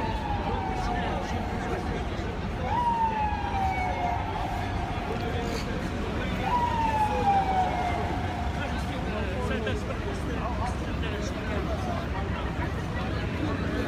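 Busy city street noise rumbles steadily.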